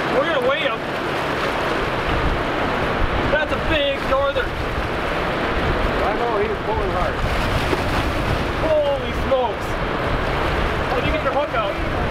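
Waves splash and wash against rocks.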